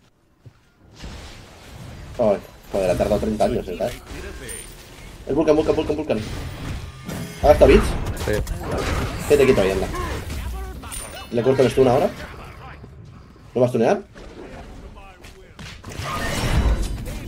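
Game sound effects of fighting and magic blasts ring out.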